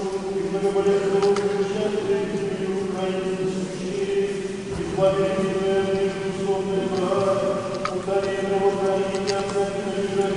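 A crowd of men and women sings a slow chant together in a large echoing hall.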